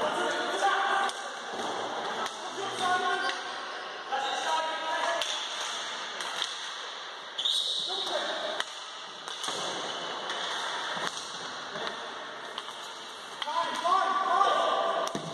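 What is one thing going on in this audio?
Players shout to each other in a large echoing hall.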